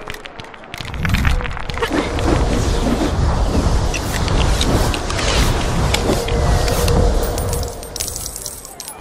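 A magic spell whooshes and hums.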